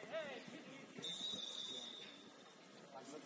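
A referee's whistle blows once sharply.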